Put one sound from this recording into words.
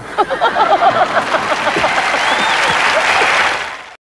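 Several men laugh together.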